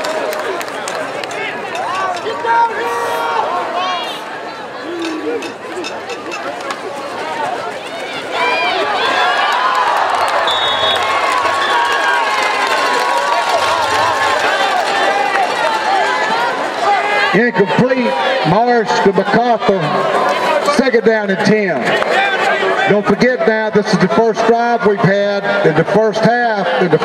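A large crowd cheers and shouts outdoors in a stadium.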